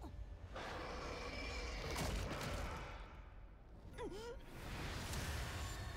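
Magical energy blasts roar and whoosh.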